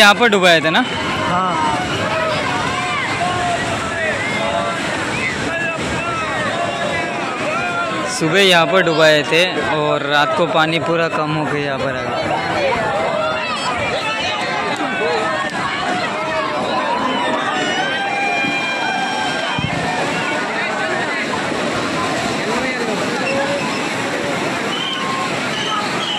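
A crowd of men and women talks and shouts all around, outdoors.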